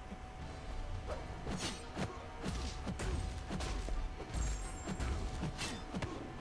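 Video game fight sounds clash and thud in quick hits.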